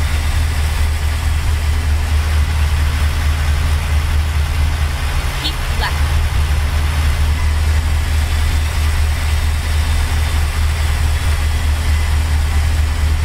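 Tyres roll on a road.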